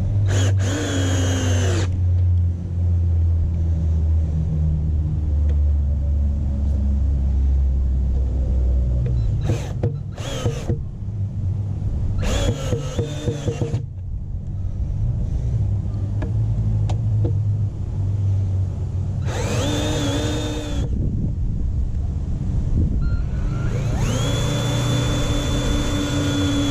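A cordless drill whirs in short bursts, driving screws.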